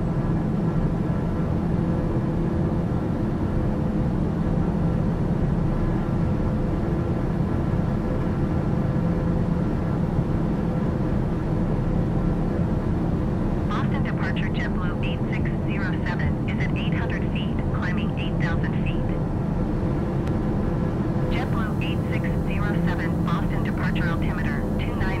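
A single-engine turboprop drones steadily, heard from inside the cabin.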